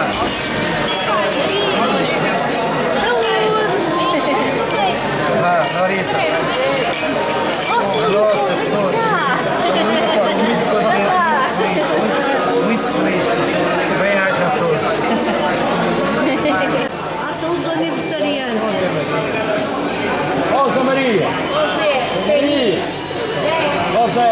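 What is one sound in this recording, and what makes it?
Glasses clink together in a toast.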